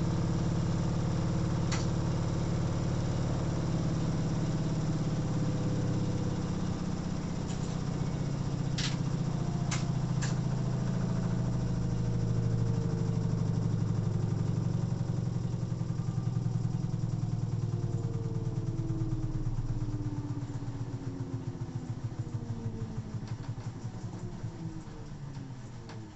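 Water sloshes inside a washing machine drum.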